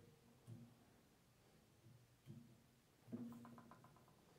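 A metal pendulum swings down and knocks softly.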